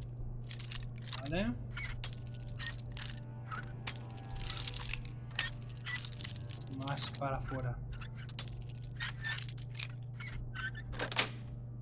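A lock pick clicks and scrapes inside a lock.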